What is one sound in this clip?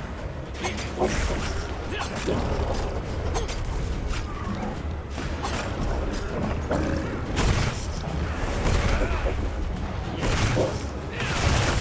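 Blades slash and strike against flesh in quick hits.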